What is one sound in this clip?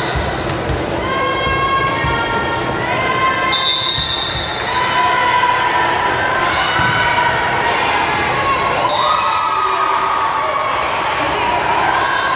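A crowd of spectators cheers and yells.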